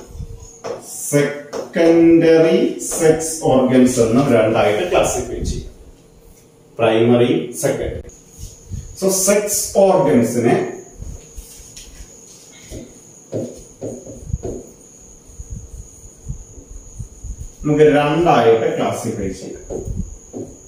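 A man lectures calmly and clearly into a close microphone.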